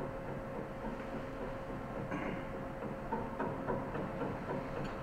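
A grand piano plays softly in a large hall.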